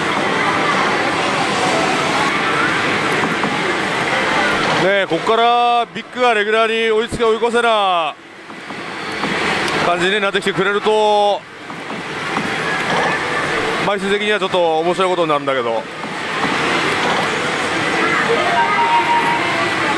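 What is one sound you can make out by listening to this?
Noisy machines clatter and chime all around.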